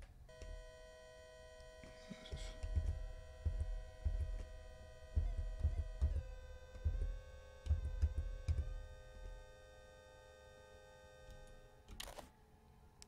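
A steady electronic tone hums and shifts in pitch now and then.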